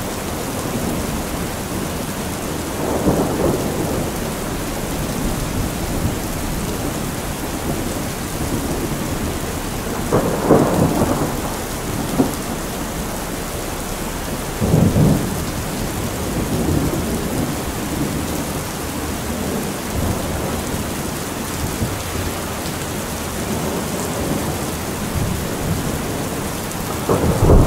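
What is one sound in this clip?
Heavy rain drums steadily on a metal roof.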